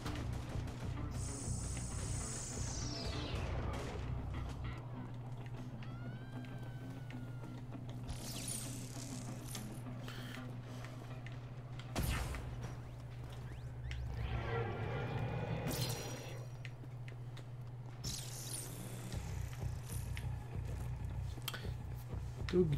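Electronic whooshes and zaps from a video game swell and fade.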